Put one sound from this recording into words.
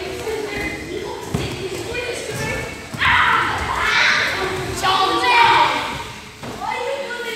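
Bodies thump and scuffle on a padded mat.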